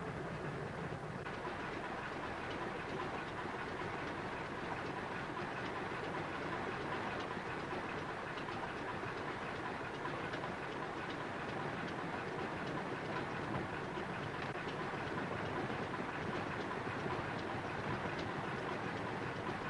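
Wind rushes past an open cockpit.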